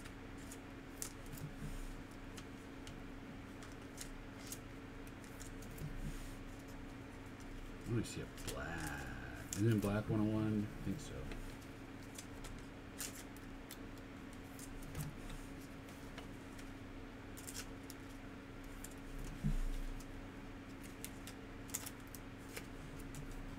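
Plastic card sleeves crinkle and rustle in someone's hands.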